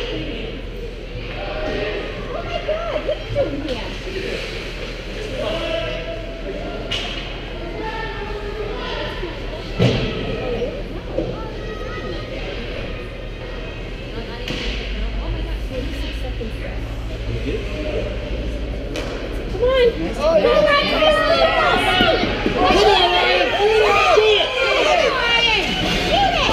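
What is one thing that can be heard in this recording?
Skate blades scrape and carve on the ice in a large echoing rink.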